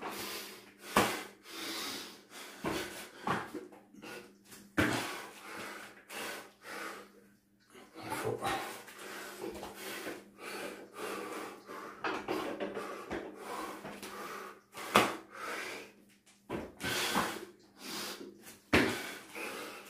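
Bare feet thump on a mat.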